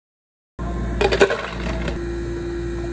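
Ice cubes clatter into a plastic cup.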